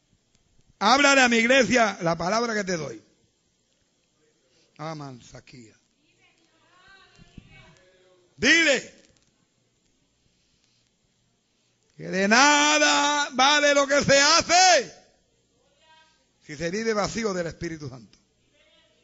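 A man preaches loudly and with fervour through a microphone, in bursts with pauses.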